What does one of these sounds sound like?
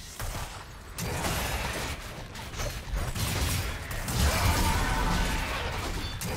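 Video game spell and combat effects burst and crackle.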